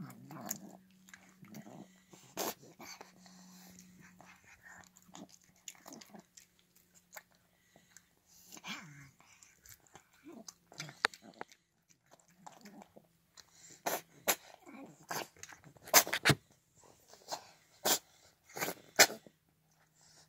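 A cat eats wet food with wet smacking and chewing sounds close by.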